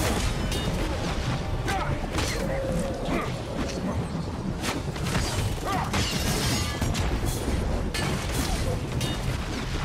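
Magic spells burst with bright whooshing blasts.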